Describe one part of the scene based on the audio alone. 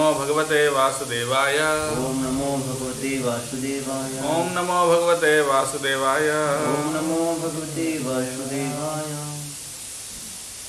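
A man chants in a steady, sung tone close to a microphone.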